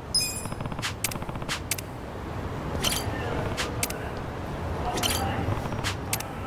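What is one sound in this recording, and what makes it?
Footsteps tap on pavement at a walking pace.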